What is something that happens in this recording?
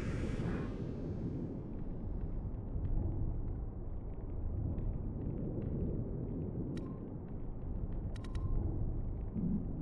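Soft electronic clicks sound as menu choices are picked.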